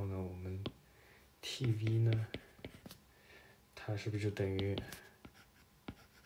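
A stylus taps on a tablet's glass.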